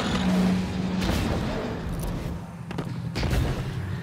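A heavy blade swooshes through the air and strikes.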